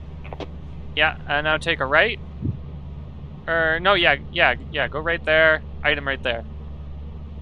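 A voice speaks through a crackling walkie-talkie.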